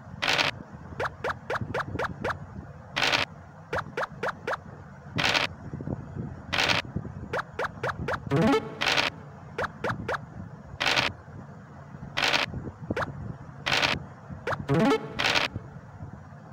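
Game pieces tap as they hop from square to square in quick short clicks.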